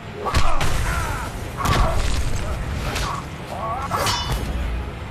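Punches and blasts thud and crack in a video game fight.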